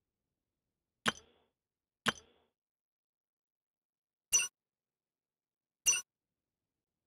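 Short menu clicks sound now and then.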